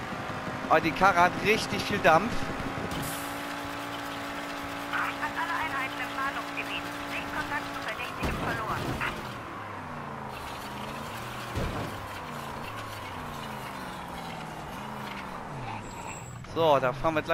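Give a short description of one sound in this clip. A sports car engine drones at speed.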